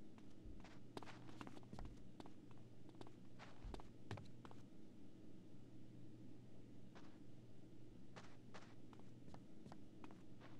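Footsteps tread steadily up stairs and across a floor.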